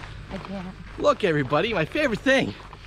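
A middle-aged man talks cheerfully close by.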